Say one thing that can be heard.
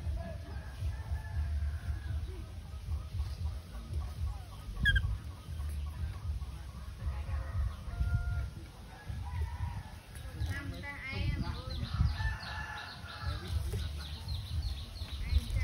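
Leaves and branches rustle as a child clambers through a tree.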